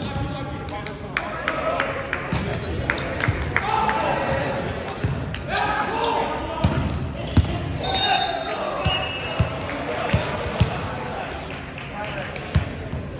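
A volleyball thuds as it is struck.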